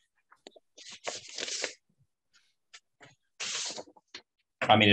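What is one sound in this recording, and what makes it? Paper rustles close by.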